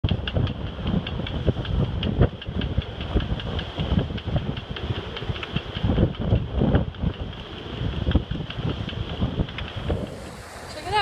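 Waves slosh and splash against a boat's hull.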